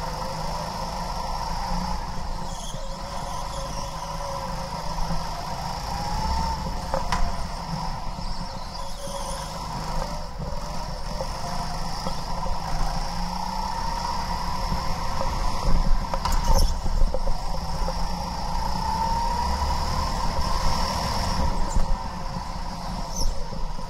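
A kart engine buzzes loudly up close, rising and falling as it speeds up and slows down.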